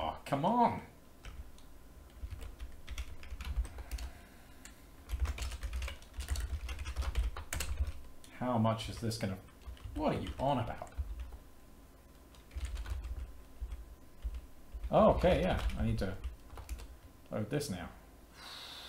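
Keys clatter as a man types on a keyboard.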